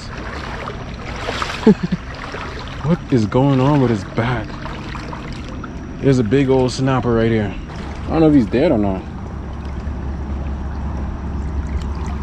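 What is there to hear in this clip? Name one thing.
A shallow stream flows and ripples steadily.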